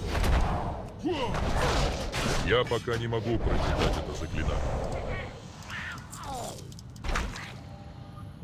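Magic spells whoosh and shimmer.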